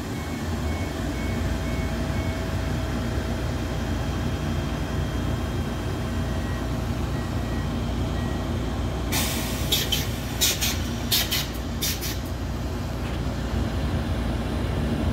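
An electric locomotive rumbles as it rolls slowly past close by.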